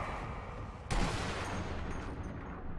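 A rifle shot cracks sharply and echoes.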